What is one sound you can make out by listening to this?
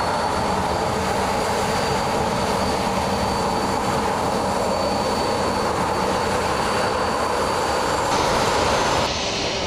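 A jet engine whines and roars steadily as an airliner taxis.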